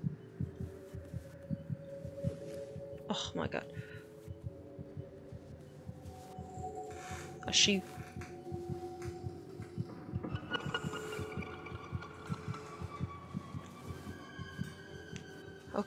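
Footsteps pad softly across a carpeted floor.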